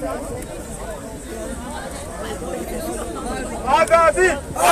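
People talk in a crowd outdoors.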